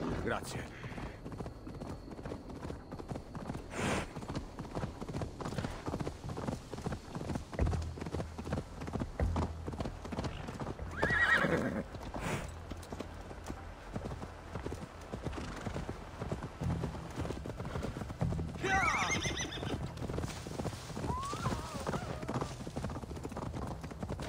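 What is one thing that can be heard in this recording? Horse hooves thud steadily on grass and dirt.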